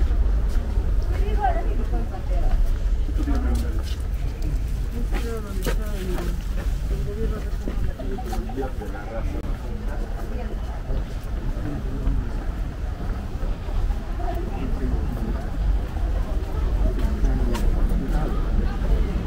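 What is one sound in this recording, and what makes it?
Men and women talk quietly nearby.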